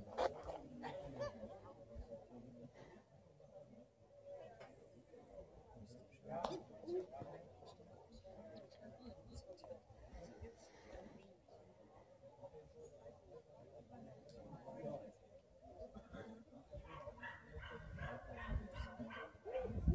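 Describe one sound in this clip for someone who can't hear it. A man and a woman talk calmly nearby outdoors.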